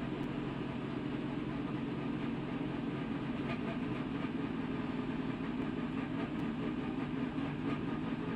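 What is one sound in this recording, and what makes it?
A race car engine roars loudly and steadily up close.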